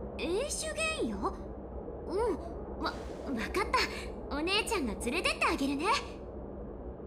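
A young woman speaks brightly and with animation, close up.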